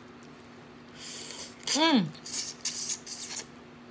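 A middle-aged woman sucks and slurps loudly on crawfish.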